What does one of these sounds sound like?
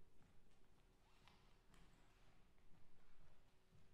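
Footsteps tap lightly on a wooden stage in a large, quiet hall.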